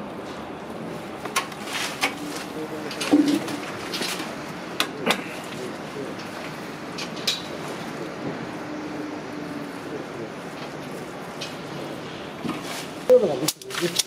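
A paint roller rolls softly over a rough wall.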